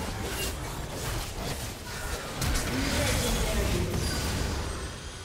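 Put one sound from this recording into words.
Video game combat sound effects whoosh and clash.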